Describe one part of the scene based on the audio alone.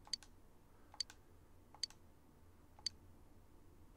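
Short electronic blips sound as dialogue text advances.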